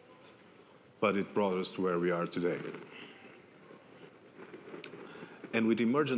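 A man speaks into a microphone over loudspeakers in an echoing hall.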